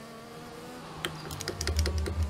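Tyres rattle over a kerb.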